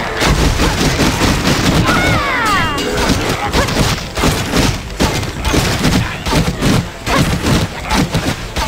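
Magic spells burst with bright whooshing blasts.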